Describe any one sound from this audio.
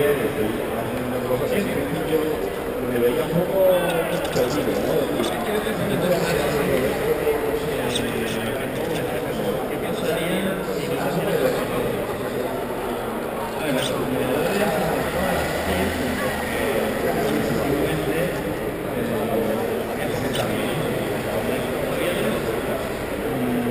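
A large crowd of people murmurs and chatters in a big echoing hall.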